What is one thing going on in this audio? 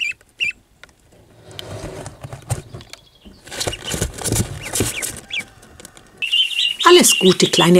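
Ducklings peep in short, high chirps.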